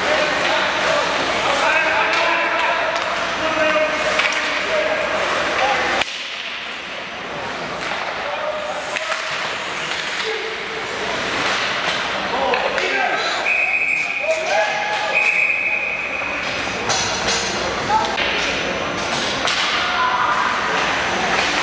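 Skates scrape and hiss across the ice in a large echoing arena.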